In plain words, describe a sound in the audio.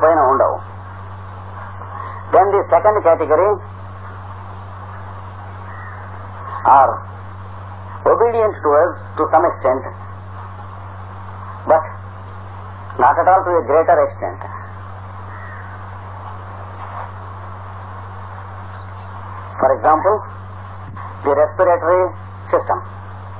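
An elderly man speaks calmly in short phrases with pauses.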